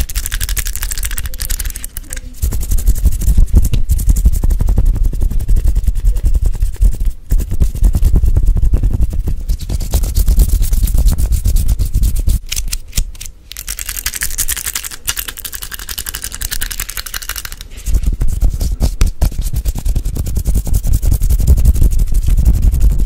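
Fingers rapidly scratch and rub right against a microphone.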